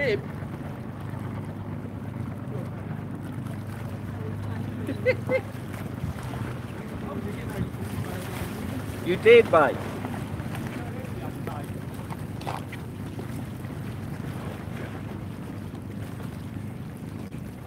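An elderly man talks calmly close by, outdoors in light wind.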